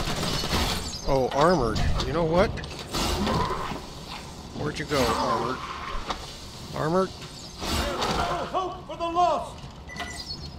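Creatures shriek and screech.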